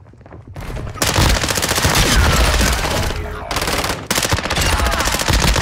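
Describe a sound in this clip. A rifle fires rapid bursts of gunshots in a large echoing hall.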